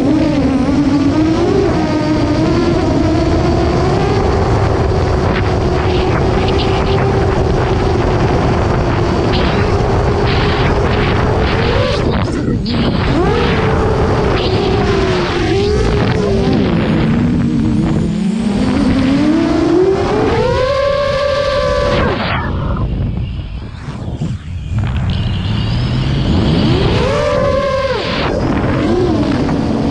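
A drone's motors whine loudly, rising and falling in pitch as it speeds and turns.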